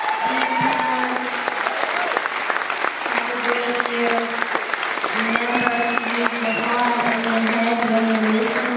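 A woman sings loudly into a microphone through a loudspeaker system.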